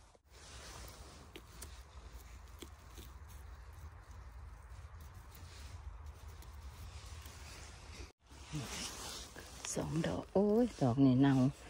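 Hands rustle through dry pine needles on the ground.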